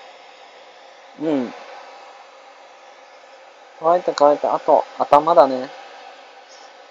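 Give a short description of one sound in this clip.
A hair dryer hums steadily nearby.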